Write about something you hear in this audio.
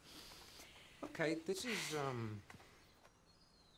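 A young woman speaks hesitantly, close by.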